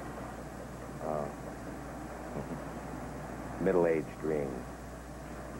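A middle-aged man speaks warmly and close by.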